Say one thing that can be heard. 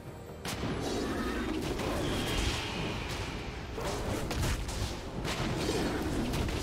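Spell blasts and hits crackle and boom in a fast fight.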